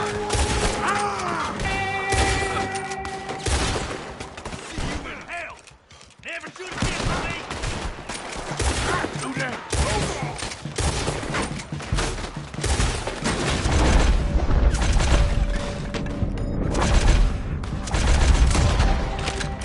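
Rifle shots crack again and again, with echoes.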